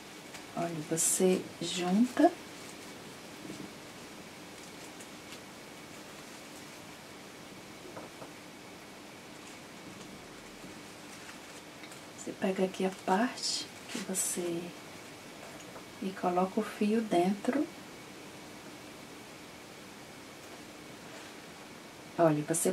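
Fabric rustles softly as hands fold and stitch it.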